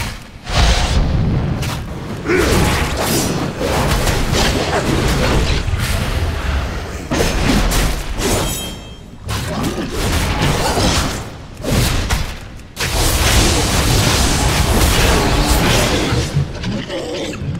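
Magical spells whoosh and crackle in a fast fight.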